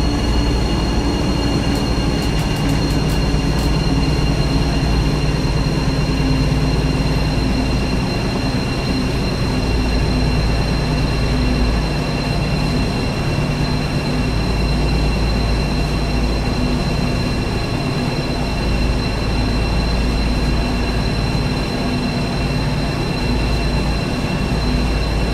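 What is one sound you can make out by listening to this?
A train engine hums and rumbles steadily as the train rolls along.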